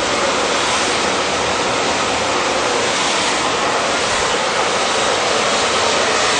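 A hair dryer blows with a steady, loud whoosh close by.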